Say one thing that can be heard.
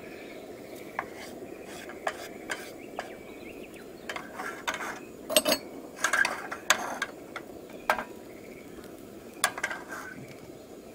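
Wooden chopsticks tap and scrape against a frying pan.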